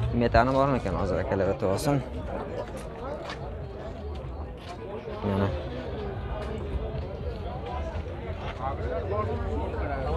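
A man speaks close by with animation.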